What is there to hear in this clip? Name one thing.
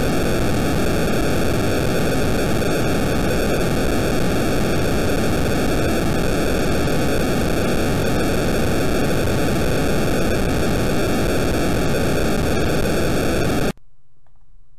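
A retro video game makes a loud, steady buzzing noise.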